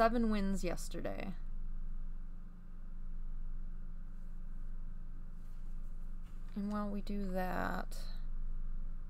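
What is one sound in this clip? A young woman talks casually into a nearby microphone.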